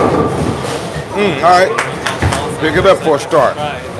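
Bowling pins clatter loudly as a ball crashes into them.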